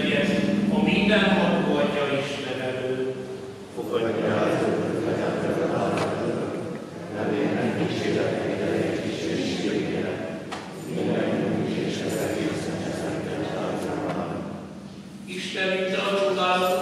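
A congregation of men and women sings together, echoing through a large hall.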